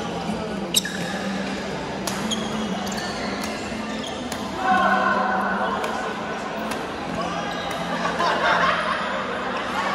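Voices of many players echo through a large indoor hall.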